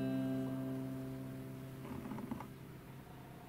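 A guitar chord rings out and fades away.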